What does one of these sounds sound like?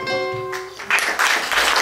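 An acoustic guitar plays a ringing note that fades.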